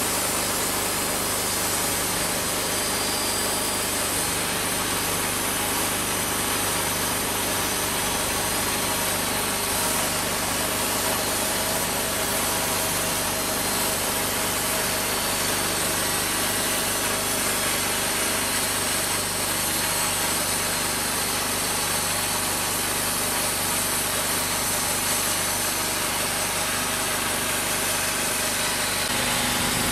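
A band saw blade cuts through a log.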